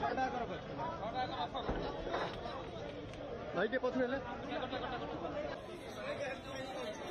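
A crowd of men talks and calls out nearby, outdoors.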